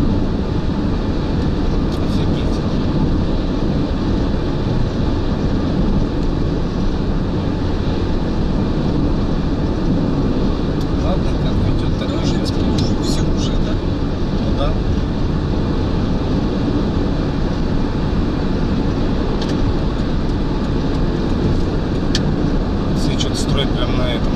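Tyres hum steadily on the road surface.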